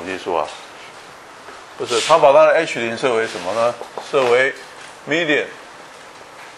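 An elderly man speaks calmly in a slightly echoing room.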